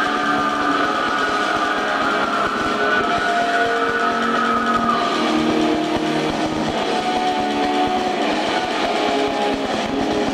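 A keyboard plays sustained chords.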